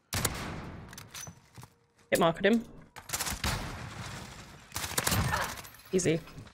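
Gunshots fire in bursts with a ringing echo.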